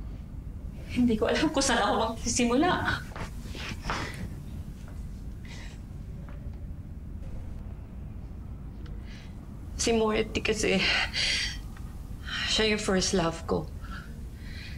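A middle-aged woman speaks emotionally, close by.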